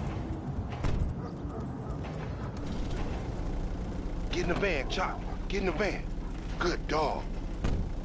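A van engine idles with a low rumble.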